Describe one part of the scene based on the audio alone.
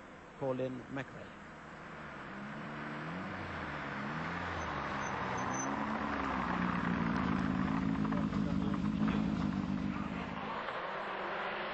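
A rally car engine roars closer, rising and growing louder.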